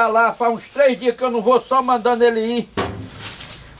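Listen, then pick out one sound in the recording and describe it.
An older man talks with animation close by.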